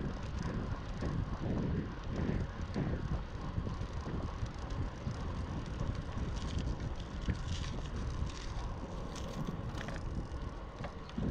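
Bicycle tyres crunch and rumble over a gravel path.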